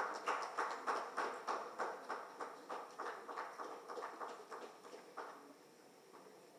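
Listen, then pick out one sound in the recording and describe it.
A crowd claps in steady rhythm.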